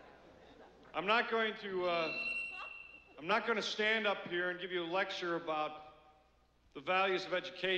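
A man speaks firmly through a microphone and loudspeakers in a large echoing hall.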